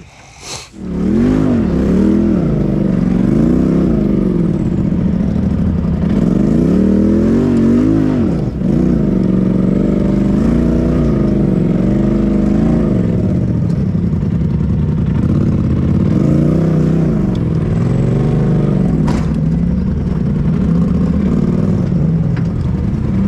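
An off-road vehicle's engine revs and roars loudly as it climbs over rough ground.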